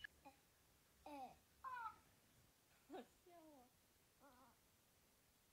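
A toy pig chirps in short squeaky voice bursts.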